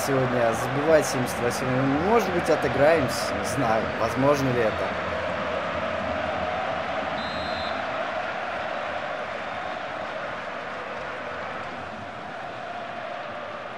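A large stadium crowd roars steadily, slowly fading.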